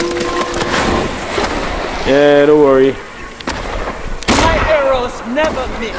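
An explosion bursts with a loud bang.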